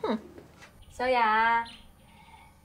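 A young woman calls out a name.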